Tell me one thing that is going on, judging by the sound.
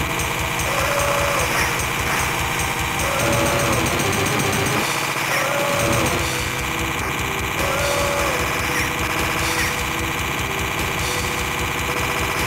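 Explosions burst repeatedly.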